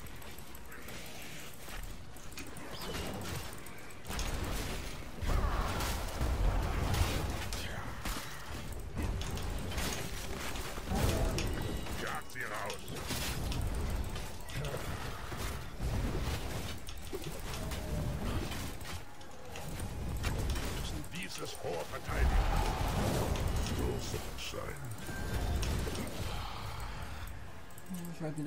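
Game battle effects crash and blast in quick bursts.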